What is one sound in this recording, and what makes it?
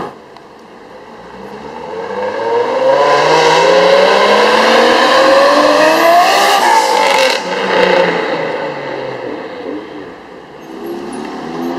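A car engine revs higher and higher as it approaches fast, then roars past close by and fades.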